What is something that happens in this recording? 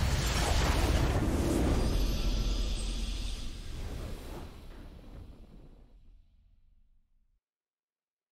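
A triumphant game fanfare swells and slowly fades away.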